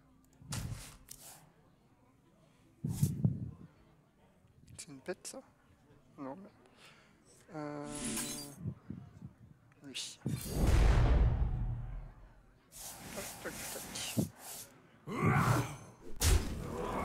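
Game sound effects chime and whoosh as cards are played.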